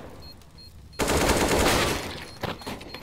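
A rifle fires a rapid burst of gunshots.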